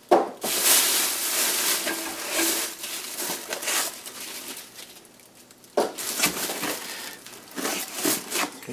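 Plastic wrapping rustles and crinkles as hands handle it.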